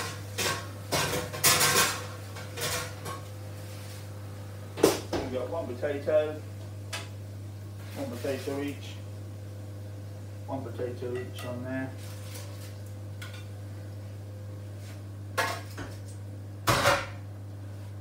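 Metal kitchen utensils clatter and scrape.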